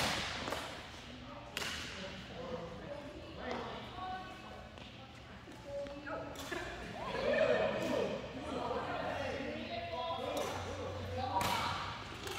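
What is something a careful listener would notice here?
Shuttlecocks are struck with rackets, with sharp taps in a large echoing hall.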